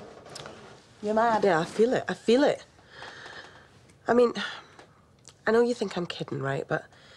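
A second woman answers in a wry, conversational voice nearby.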